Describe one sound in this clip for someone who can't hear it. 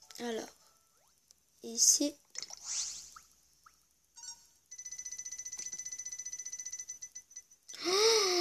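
A handheld game plays short bright sound effects and jingles.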